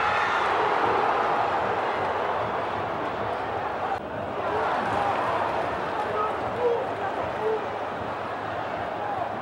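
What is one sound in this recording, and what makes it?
A large stadium crowd roars and chants steadily outdoors.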